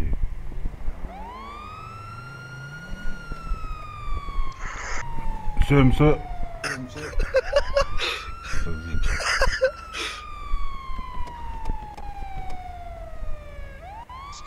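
A police siren wails in rising and falling sweeps.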